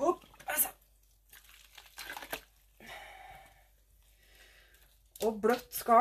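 Wet yarn squelches and sloshes in water.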